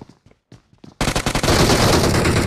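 Rapid gunshots ring out close by.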